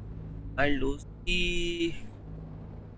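A man speaks with tension, close by.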